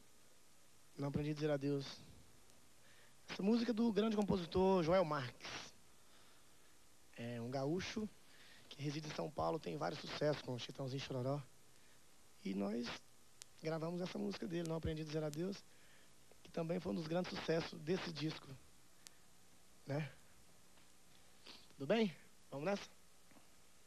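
A man sings softly into a microphone, in phrases with pauses between them.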